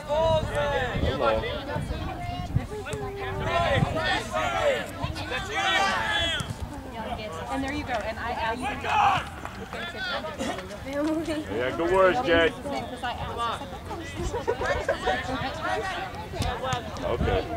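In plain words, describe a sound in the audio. Young women and girls call out and cheer nearby outdoors.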